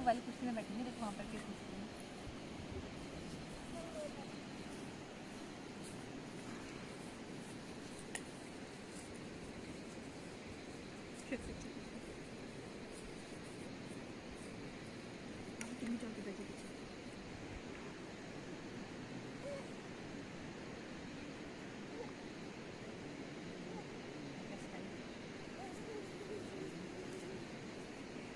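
A small child babbles and squeals outdoors.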